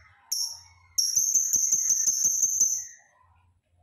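A small parrot trills in a fast, rapid run of high chirps.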